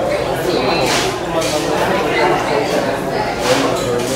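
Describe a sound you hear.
A knife scrapes on a plate.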